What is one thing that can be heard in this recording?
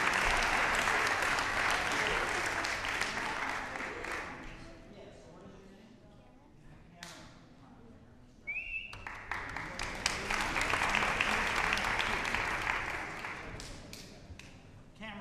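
An audience applauds loudly in a room with echo.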